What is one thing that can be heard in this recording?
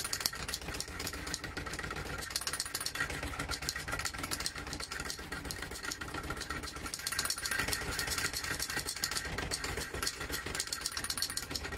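An electric motor hums and whirs steadily as a drum spins fast.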